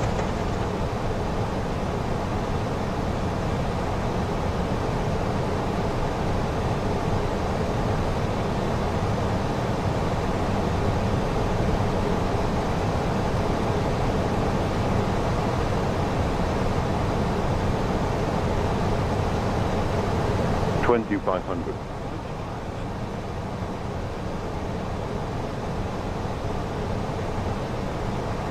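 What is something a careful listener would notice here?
Jet engines and rushing air roar steadily around an airliner cockpit.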